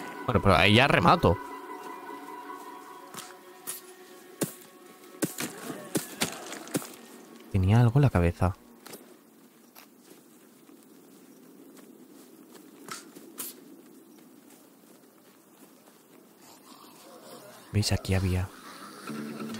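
A man talks into a close microphone in short, lively bursts.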